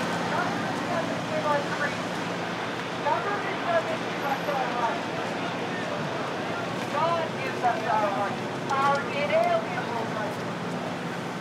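Men talk to each other in a crowd.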